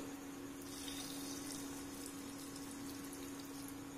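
Water pours into a metal jar and splashes softly.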